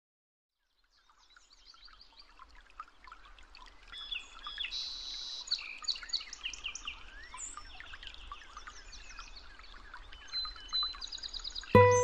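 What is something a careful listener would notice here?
A small bird chirps and trills nearby.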